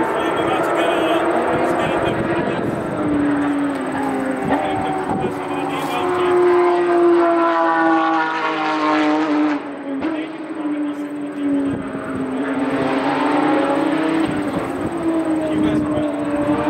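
Kart engines whine and rev around a track.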